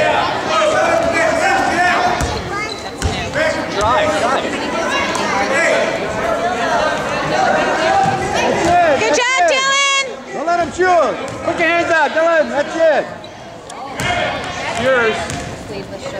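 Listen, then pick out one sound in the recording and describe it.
Spectators and young players shout and cheer in an echoing gym.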